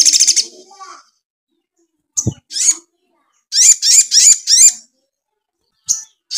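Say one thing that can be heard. A small songbird sings close by in loud, high chirping bursts.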